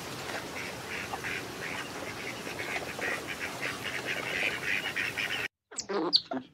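Ducks whistle and chatter.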